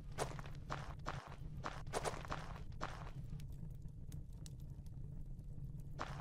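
A torch flame crackles softly.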